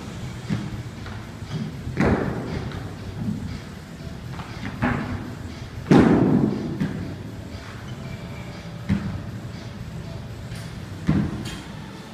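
Feet land with heavy thuds again and again.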